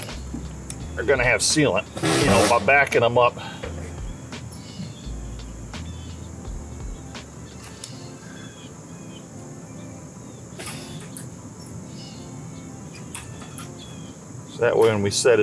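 A caulking gun clicks as its trigger is squeezed.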